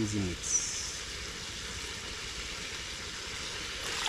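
Thick liquid pours and splashes into a pot.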